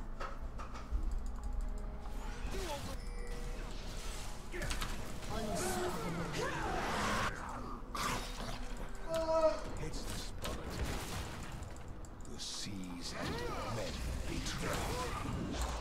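Video game spells whoosh and crackle during a fight.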